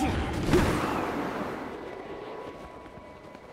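A loud magical burst whooshes and slowly fades.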